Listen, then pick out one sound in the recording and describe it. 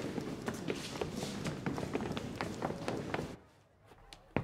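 Footsteps tramp on a hard floor.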